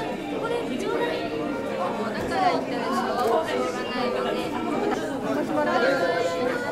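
Young women talk cheerfully close by.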